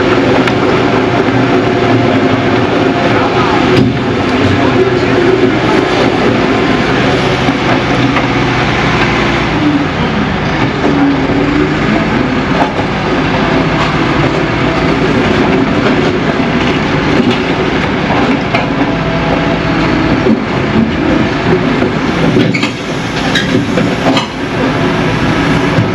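A heavy excavator engine rumbles and whines steadily in the distance.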